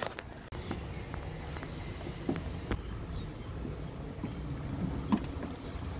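A screwdriver scrapes against plastic.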